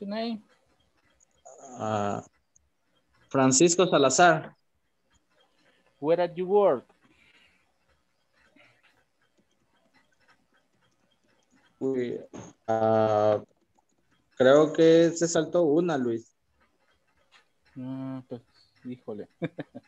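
A man speaks with animation over an online call, in short bursts with pauses.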